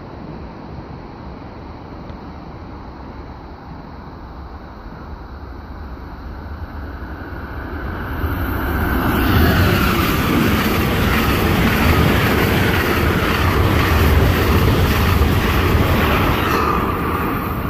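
A train approaches and rushes past close by with a loud roar.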